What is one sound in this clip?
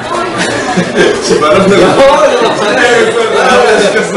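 Young men laugh together.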